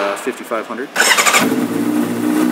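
A motorcycle engine starts up with a sudden roar.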